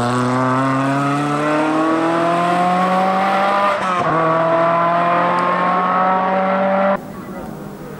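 A rally car engine revs hard and fades as it drives away.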